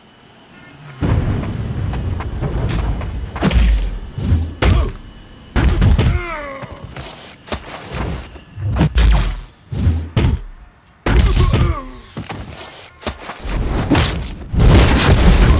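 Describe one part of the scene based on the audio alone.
Punches and kicks thud and crack in a fast fight.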